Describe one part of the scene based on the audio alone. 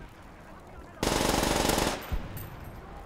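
A submachine gun fires a rapid burst.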